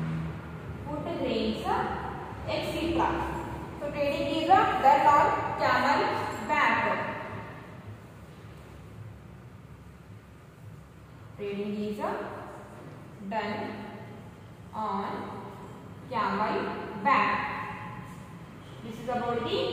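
A woman speaks calmly and clearly, as if teaching.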